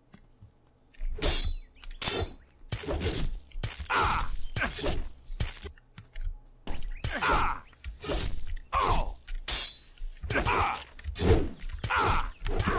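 A sword swishes through the air again and again.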